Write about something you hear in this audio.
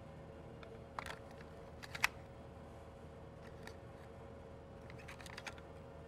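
A cassette tape clicks as hands handle it.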